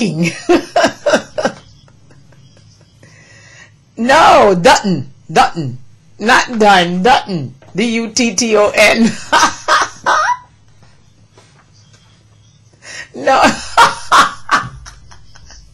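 A woman laughs heartily close to a microphone.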